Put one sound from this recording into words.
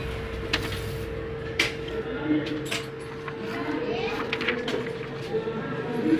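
Paper rustles and crinkles as a hand handles it.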